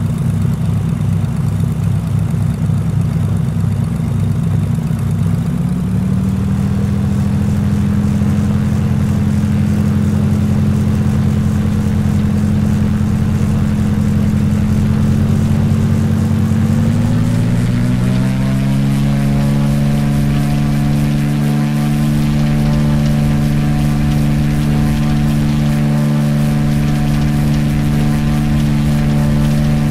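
A small propeller plane's engine drones loudly, revving up in pitch as the plane gathers speed down the runway.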